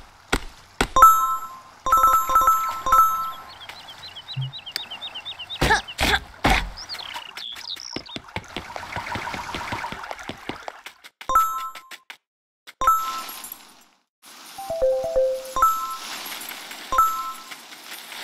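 A bright chime rings out several times.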